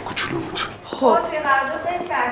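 A woman speaks on a phone.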